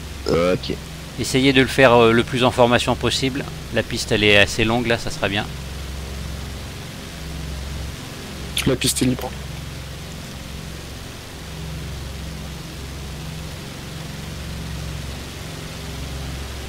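A propeller aircraft engine drones steadily.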